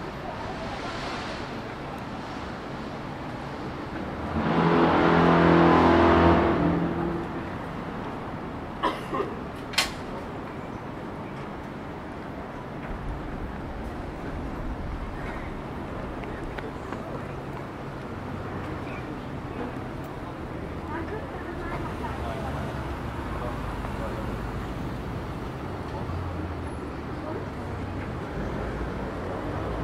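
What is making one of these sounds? Traffic hums steadily in the street outdoors.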